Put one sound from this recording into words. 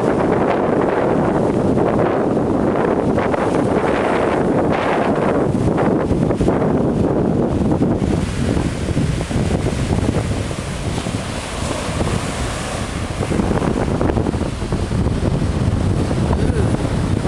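Waves crash and wash onto a beach.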